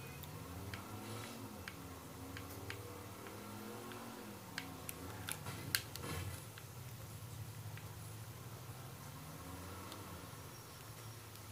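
A car engine revs up and down through a television speaker.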